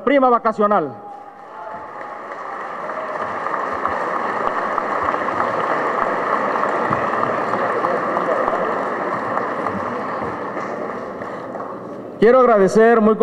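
An audience applauds steadily, then the applause fades.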